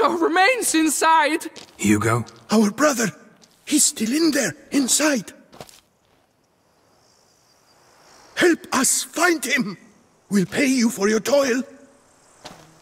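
A man speaks urgently and pleadingly, close by.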